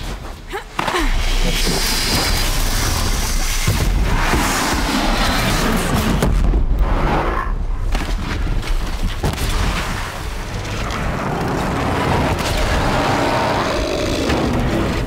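A heavy machine creature stomps and growls.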